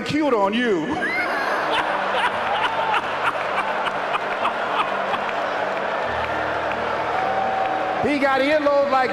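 A large crowd laughs and applauds.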